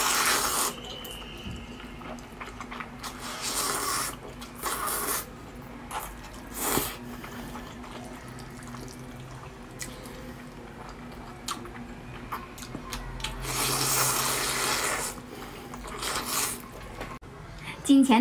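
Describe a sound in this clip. A woman slurps noodles loudly and close up.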